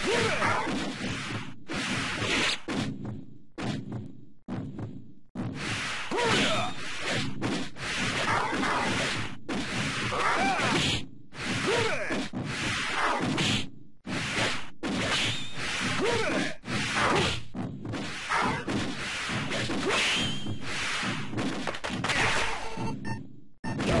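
Swords clash and slash repeatedly.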